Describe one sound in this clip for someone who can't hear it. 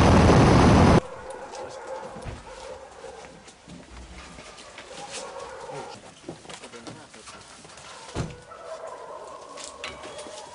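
Footsteps shuffle and scrape nearby.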